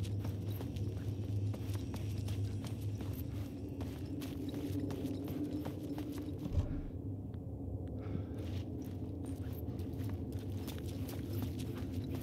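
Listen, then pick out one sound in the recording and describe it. Footsteps tap on a hard floor.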